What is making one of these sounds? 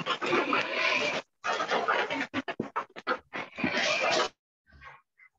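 A man speaks with animation over an online call.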